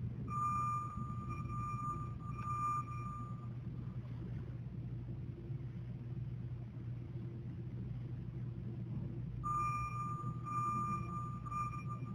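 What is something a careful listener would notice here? An electronic meter beeps with a steady high tone.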